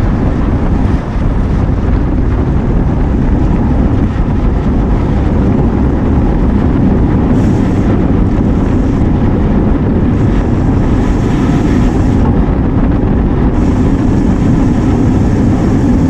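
Wind rushes loudly past a microphone while riding outdoors.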